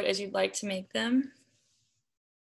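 A young woman speaks briefly through an online call microphone.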